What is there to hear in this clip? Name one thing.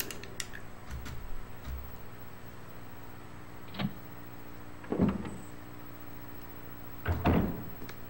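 A heavy door creaks and thuds open.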